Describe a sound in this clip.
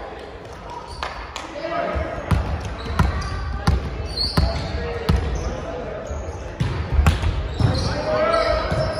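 A volleyball is struck with sharp smacks in a large echoing gym.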